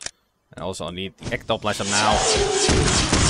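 A weapon fires with a crackling burst.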